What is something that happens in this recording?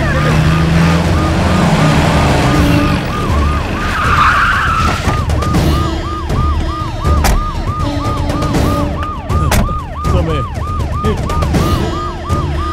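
A police siren wails in quick, repeating whoops.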